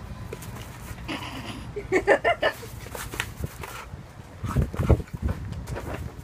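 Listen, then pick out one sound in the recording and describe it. Dogs growl and snarl playfully while wrestling.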